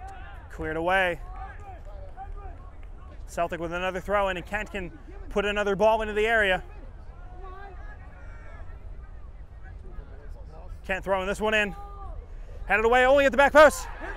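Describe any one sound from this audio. Men shout loudly to each other across an open field.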